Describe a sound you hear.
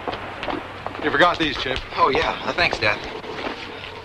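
A boy speaks up nearby.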